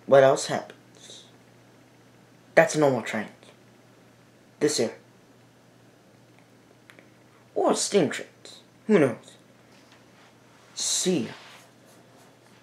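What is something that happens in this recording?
A teenage boy speaks close up in short, animated bursts with pauses between them.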